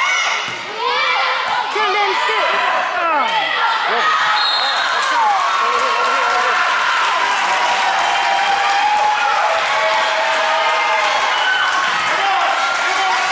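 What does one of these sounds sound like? A crowd of young spectators cheers and shouts in a large echoing hall.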